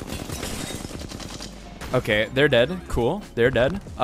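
Rapid gunfire rattles.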